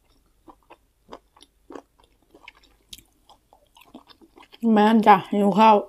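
Food crinkles and rustles as fingers pick it apart.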